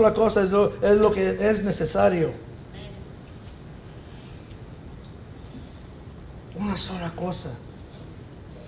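A middle-aged man speaks with emotion into a microphone, pausing between phrases.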